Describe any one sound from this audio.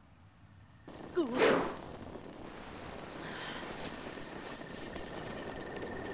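Flames crackle and burn in grass.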